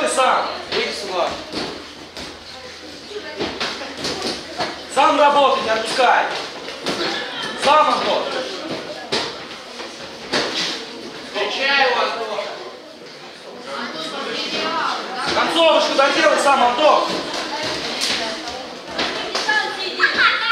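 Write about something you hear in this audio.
Boxing gloves thud against a fighter.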